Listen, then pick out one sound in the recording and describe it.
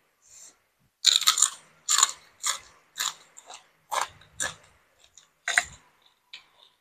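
A woman chews and smacks her lips loudly close by.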